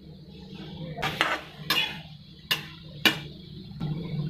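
A metal spatula scrapes and clatters against a pan.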